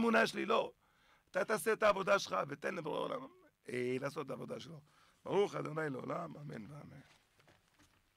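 A man speaks with animation into a microphone close by.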